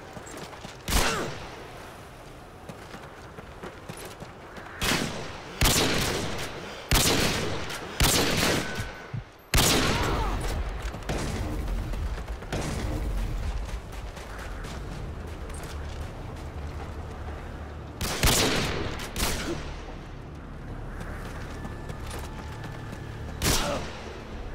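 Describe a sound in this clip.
A sniper rifle fires loud, sharp shots that echo away.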